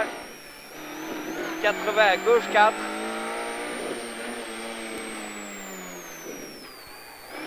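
A rally car engine roars and revs up and down.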